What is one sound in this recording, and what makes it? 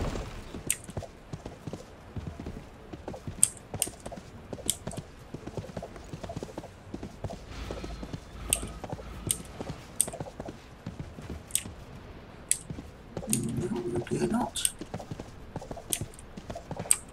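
Footsteps thud rhythmically on the ground as a character runs.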